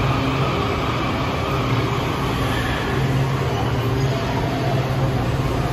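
A subway train hums and rumbles loudly while idling at a platform.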